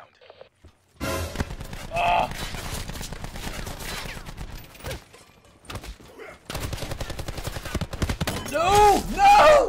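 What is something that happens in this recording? Rapid gunfire rattles in bursts.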